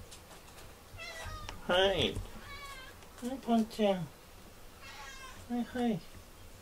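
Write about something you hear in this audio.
A cat meows softly several times.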